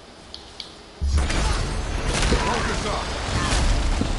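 Heavy axe blows land with loud impacts.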